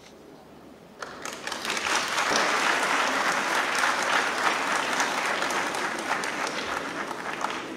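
A large crowd applauds in a big echoing hall.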